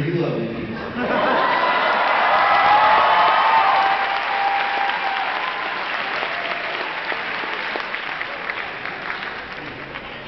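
An audience laughs and applauds loudly in a large echoing hall.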